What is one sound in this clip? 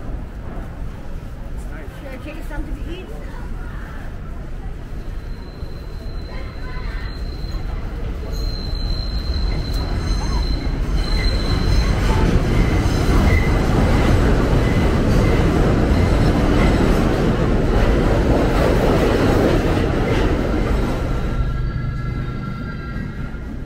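Passers-by murmur and chat on a busy street.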